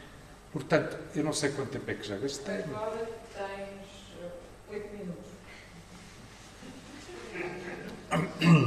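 A man speaks calmly into a microphone in a room with a slight echo.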